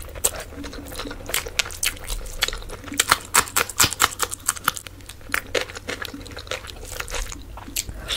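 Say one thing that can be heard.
Fingers squish and mix saucy rice and meat.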